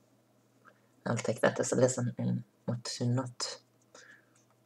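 A woman speaks close to the microphone.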